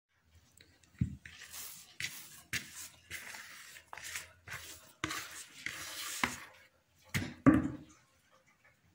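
Hands knead dough in a plastic bowl.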